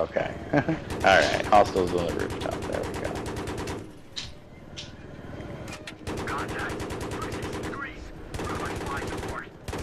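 A cannon fires in rapid bursts.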